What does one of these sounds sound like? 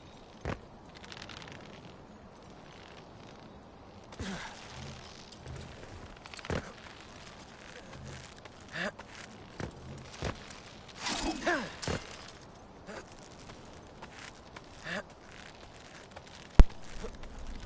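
Hands grab a rope and scrape on rock in short, scattered scuffs.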